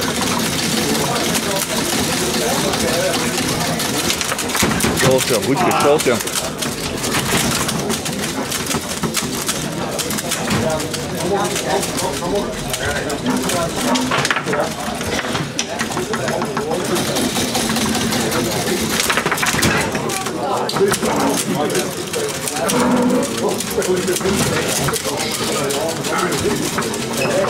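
Foosball rods rattle and clack as players jerk them.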